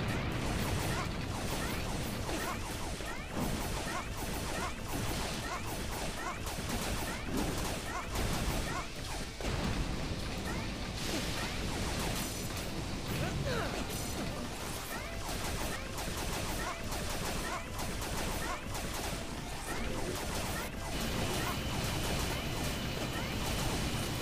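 Video game blaster shots fire rapidly.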